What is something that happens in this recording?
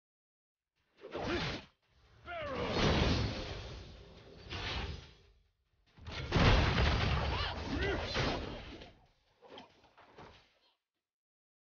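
Video game combat effects clash and burst in quick succession.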